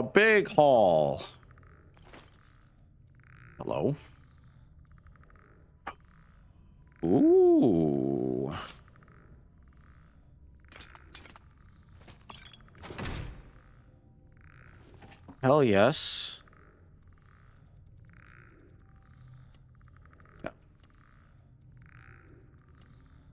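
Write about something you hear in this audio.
Soft game menu clicks tick again and again.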